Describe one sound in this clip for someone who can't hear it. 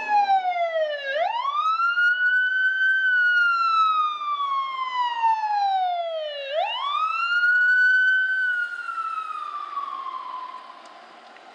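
A fire engine's siren wails loudly, rising and falling.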